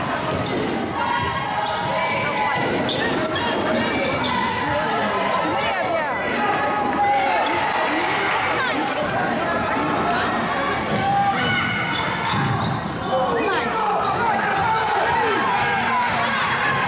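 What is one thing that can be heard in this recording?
A crowd of spectators talks and calls out, echoing in a large hall.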